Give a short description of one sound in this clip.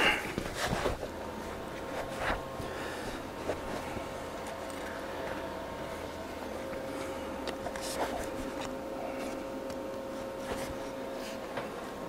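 An arc welder buzzes and crackles steadily.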